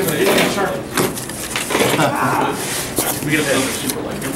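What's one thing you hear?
Cardboard flaps rustle and thump as they are folded open.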